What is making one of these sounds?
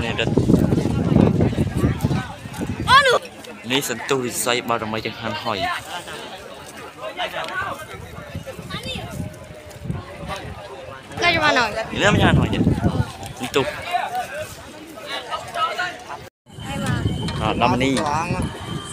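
A crowd of men and women chatter and shout close by, outdoors.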